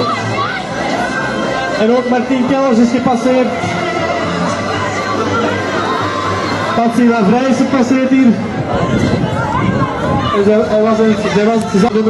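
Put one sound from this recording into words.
A crowd of men and women chatters and cheers nearby outdoors.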